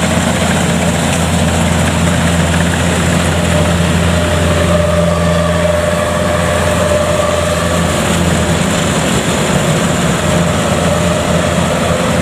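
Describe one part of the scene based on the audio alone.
A combine harvester's engine rumbles and drones steadily close by.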